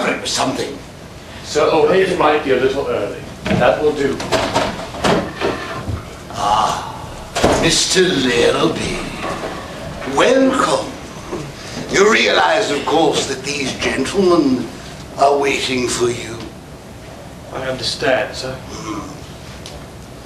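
Men speak with animation in an echoing hall.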